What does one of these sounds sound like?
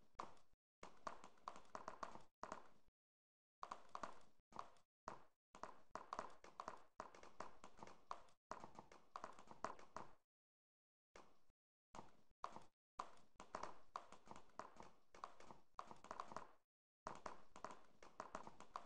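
A horse's hooves clatter at a gallop on pavement.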